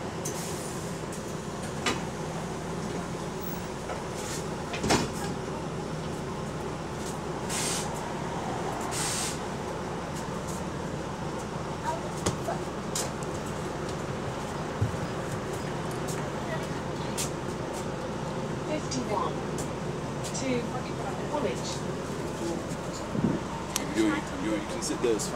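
A bus engine hums steadily from inside the bus.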